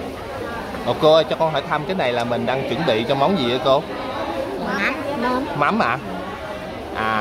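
An elderly woman talks and laughs close by.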